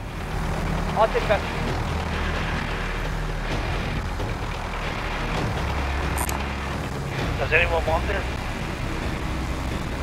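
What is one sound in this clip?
A helicopter's rotor thumps and its engine drones steadily.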